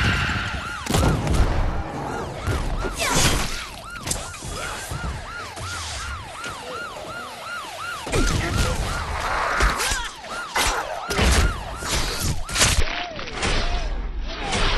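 A blade slashes and strikes with sharp, wet thuds.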